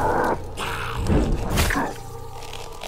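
Heavy blows land with deep thuds.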